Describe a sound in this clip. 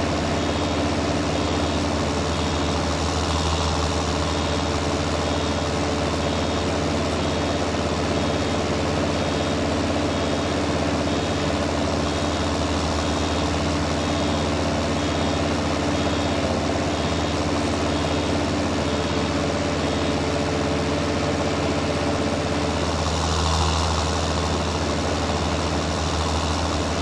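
A baler clatters as it gathers hay.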